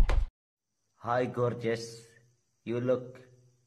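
A young man talks close up, heard through a phone.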